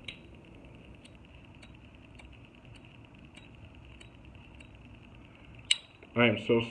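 A metal lighter lid clicks open and snaps shut.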